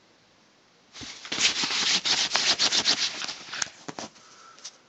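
Bedding rustles and scrapes close by.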